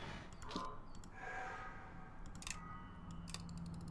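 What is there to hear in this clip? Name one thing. A clock ticks.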